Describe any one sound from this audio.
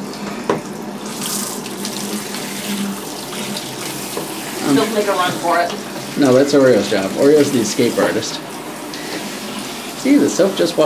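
Water sprays from a hand shower.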